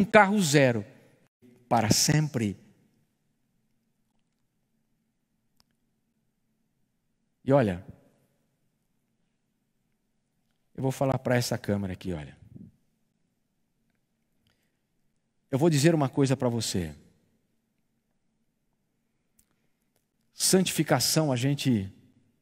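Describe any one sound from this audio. A middle-aged man speaks calmly into a microphone in short phrases with long pauses.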